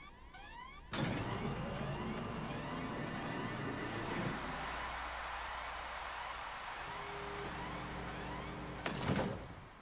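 A heavy metal lid swings open with a loud mechanical whoosh.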